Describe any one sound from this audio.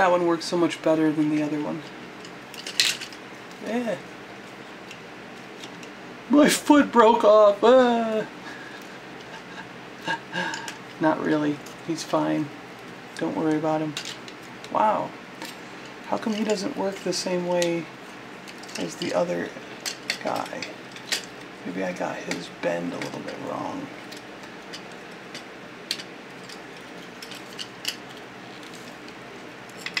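Plastic toy parts click and snap as they are moved by hand.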